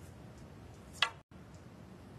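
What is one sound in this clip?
A cue sharply strikes a snooker ball.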